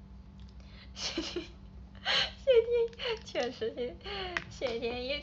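A young woman laughs.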